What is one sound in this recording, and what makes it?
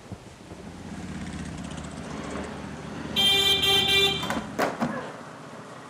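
A motorcycle engine revs nearby.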